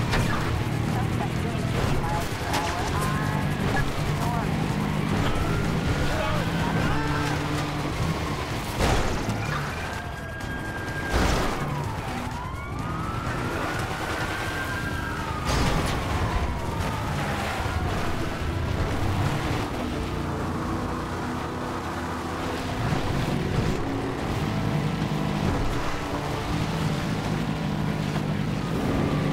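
A car engine roars as a car drives over railway tracks.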